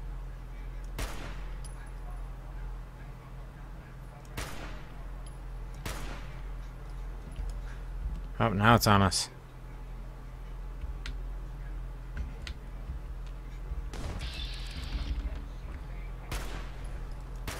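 Rifle shots ring out sharply, several times.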